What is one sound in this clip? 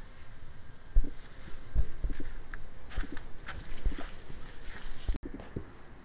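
Footsteps crunch on wood mulch.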